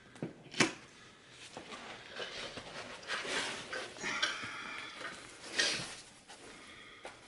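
Carpet tears and rips as it is pulled up from the floor.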